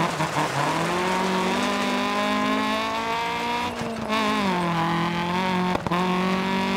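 A rally car engine revs hard, its pitch climbing and briefly dropping at a gear change.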